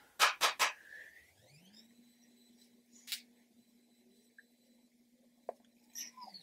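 A makeup brush swishes softly across skin.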